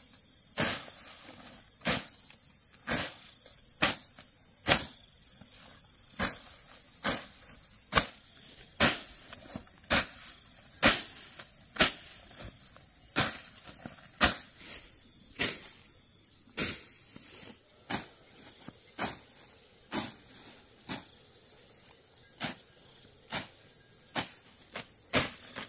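A hoe chops into weedy soil at an even pace.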